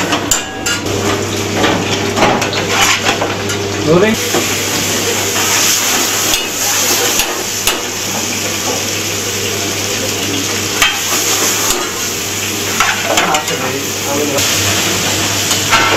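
A metal spoon scrapes and clinks against a pan.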